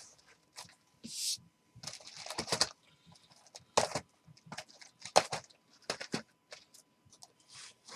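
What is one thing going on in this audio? Boxes of cards knock and rustle as they are handled.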